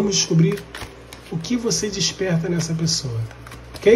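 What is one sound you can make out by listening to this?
A deck of cards is shuffled by hand.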